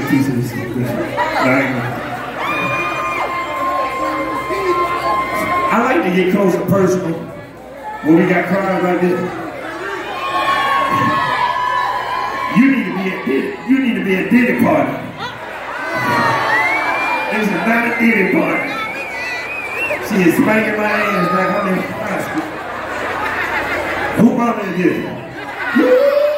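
Music plays loudly over speakers.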